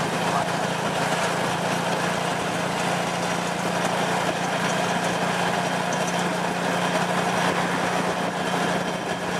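A motorbike engine pulling a tuk-tuk drones steadily while riding.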